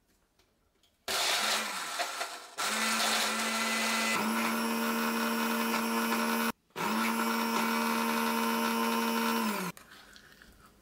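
A blender whirs loudly, chopping fruit.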